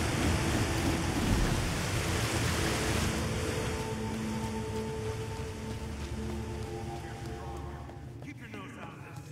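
Wind roars in a storm.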